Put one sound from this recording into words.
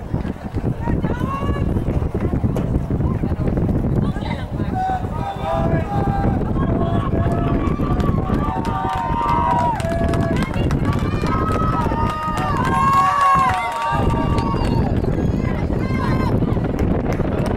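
Spectators shout and cheer outdoors.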